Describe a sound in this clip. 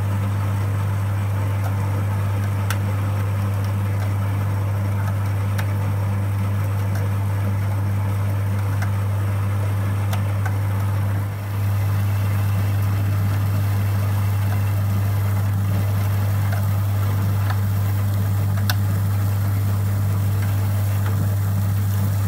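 Grain rustles and crackles as it drains through a mill.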